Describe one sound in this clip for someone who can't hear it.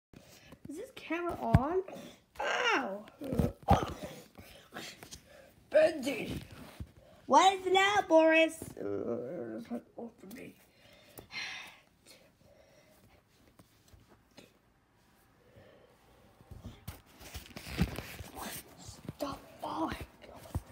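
Cloth rustles as it is handled close by.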